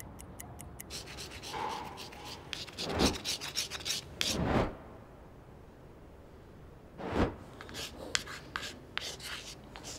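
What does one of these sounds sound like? Chalk scrapes and scratches on a wall.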